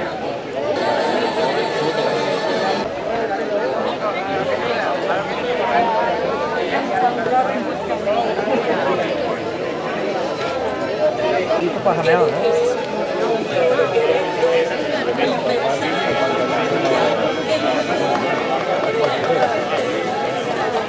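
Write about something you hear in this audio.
A large crowd of men and women chatters loudly all around outdoors.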